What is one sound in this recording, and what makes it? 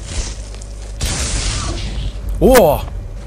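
A magic lightning spell crackles and buzzes loudly.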